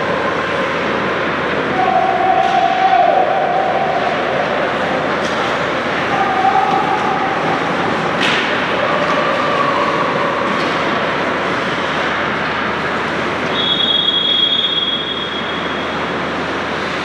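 Skates scrape and hiss across the ice in a large echoing rink.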